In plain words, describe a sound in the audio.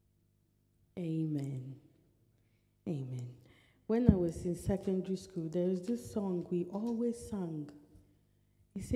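A woman speaks calmly into a microphone over a loudspeaker.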